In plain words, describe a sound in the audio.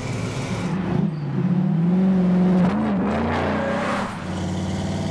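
A car engine roars as the car drives past.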